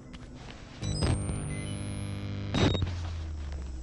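A handheld camcorder clicks as it is raised.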